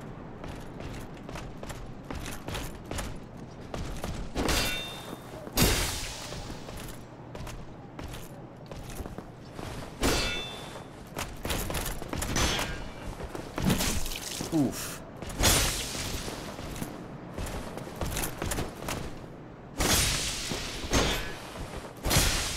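Footsteps in armour clank on stone.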